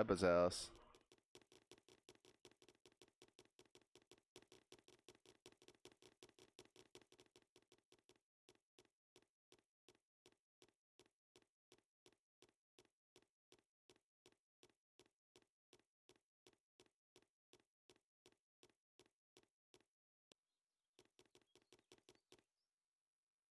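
Light cartoon footsteps patter quickly in a steady rhythm.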